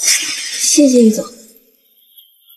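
A young woman speaks politely up close.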